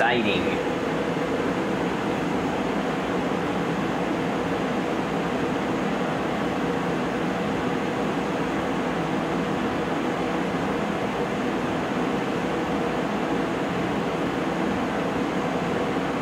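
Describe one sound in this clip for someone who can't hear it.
A laser engraving machine hums steadily with a whirring fan.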